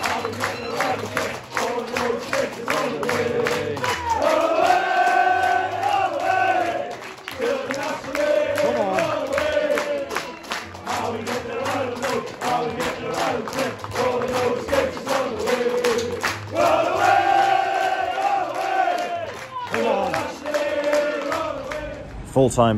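A crowd of fans sings and chants loudly.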